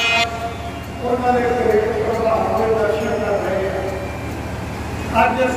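An elderly man speaks into a microphone over a loudspeaker, in a steady, earnest voice.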